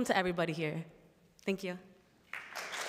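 A young woman speaks cheerfully into a microphone in a large hall.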